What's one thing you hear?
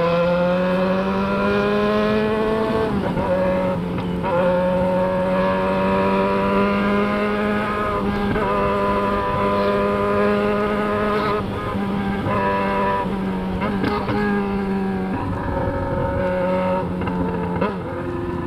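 A motorcycle engine roars loudly up close, rising in pitch and dropping with each gear change.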